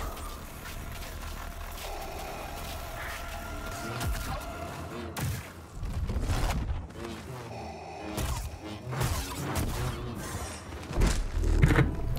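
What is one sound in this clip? Lightsabers clash with sharp crackling hits.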